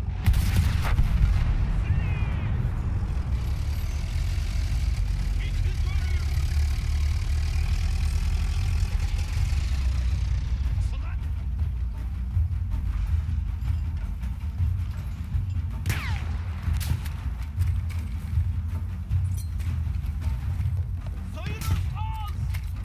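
Rifle shots crack loudly now and then.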